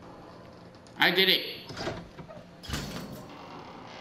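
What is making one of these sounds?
A metal mesh gate creaks open.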